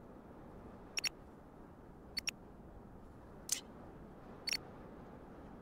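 Sharp interface clicks sound a few times.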